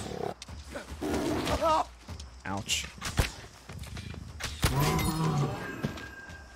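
A big cat snarls and growls.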